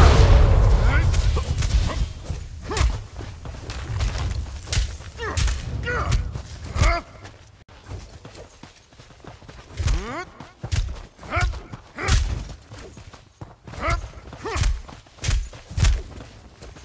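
Weapons clash with sharp hits again and again.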